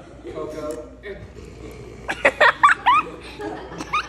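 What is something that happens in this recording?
A crowd of people laughs nearby.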